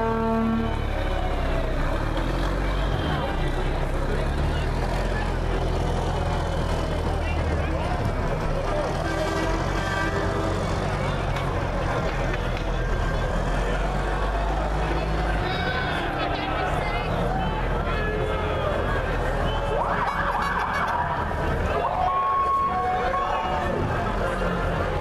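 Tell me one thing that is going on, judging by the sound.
A crowd of onlookers chatters and calls out along a street outdoors.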